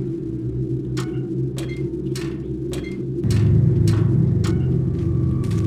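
Footsteps clank on a metal ladder rung by rung.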